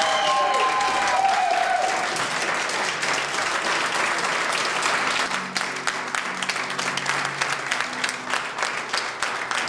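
A crowd claps along in a steady rhythm.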